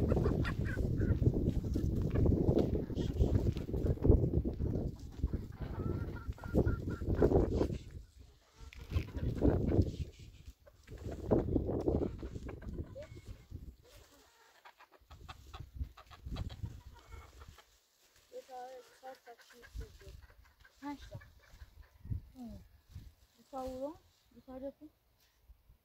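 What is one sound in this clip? Leafy plants rustle as they are pulled and handled.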